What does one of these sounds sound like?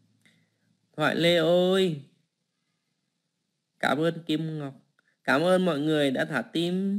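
A woman sings close to a microphone.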